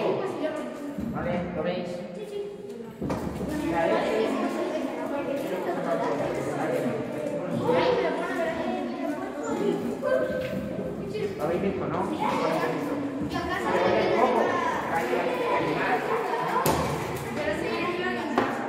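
Children chatter and talk softly in the background.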